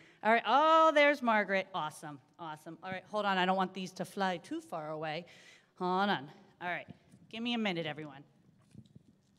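A woman speaks with animation, heard through a microphone in a large room.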